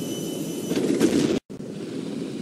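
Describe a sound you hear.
A cannon shot explodes with a loud blast.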